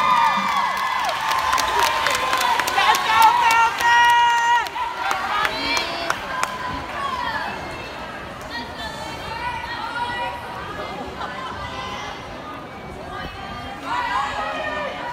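A crowd of young people cheers and screams in a large echoing hall.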